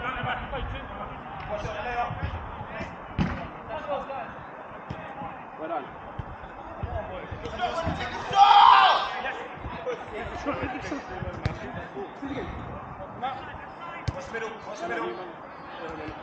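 Men shout and call out to each other across an open outdoor pitch.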